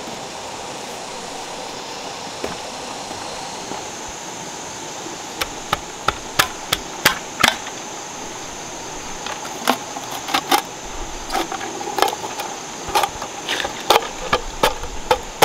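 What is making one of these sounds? A stream trickles and babbles steadily nearby.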